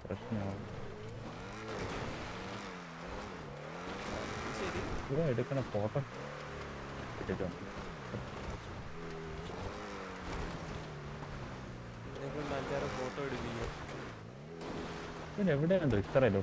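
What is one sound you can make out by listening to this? A sports car engine roars, revving up and down as the car speeds and slows.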